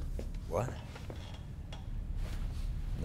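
A young man answers briefly, close by.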